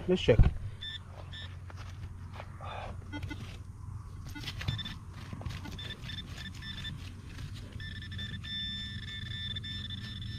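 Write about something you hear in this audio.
A hand trowel scrapes and digs into dry, stony soil.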